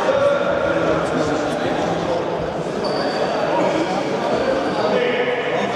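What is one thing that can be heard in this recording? Young players shout and call out to each other in a large echoing hall.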